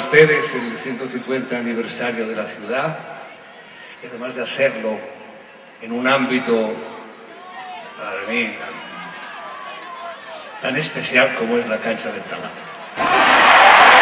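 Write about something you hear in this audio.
An elderly man speaks with animation into a microphone, heard through loudspeakers.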